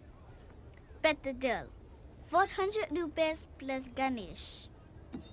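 A young girl speaks cheerfully and close by.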